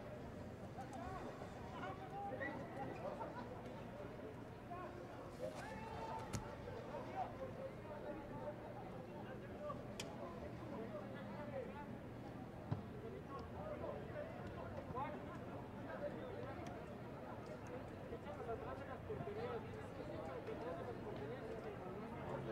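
Young players shout calls to each other from afar in an open, echoing stadium.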